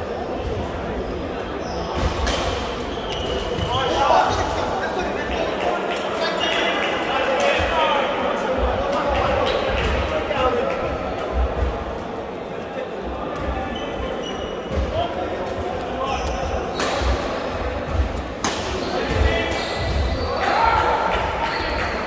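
Shuttlecocks are struck with rackets, with sharp pings that echo around a large hall.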